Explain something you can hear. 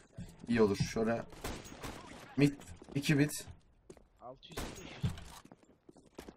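A sniper rifle fires sharp, loud shots.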